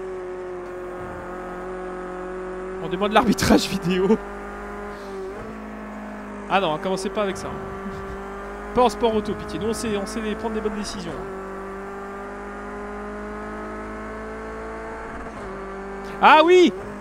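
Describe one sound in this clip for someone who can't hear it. A racing car engine drones steadily, its pitch shifting with the gears.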